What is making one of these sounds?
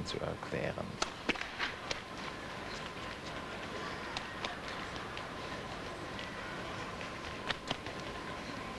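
A tennis ball is struck back and forth with rackets in a large echoing hall.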